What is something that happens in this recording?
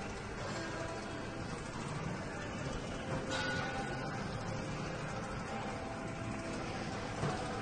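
A treadmill belt whirs and rumbles steadily.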